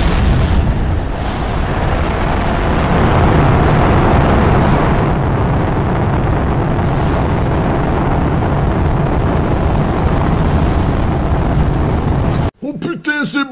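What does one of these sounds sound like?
Rocket engines roar with a deep, steady rumble.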